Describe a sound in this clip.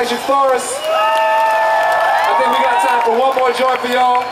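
A crowd cheers outdoors.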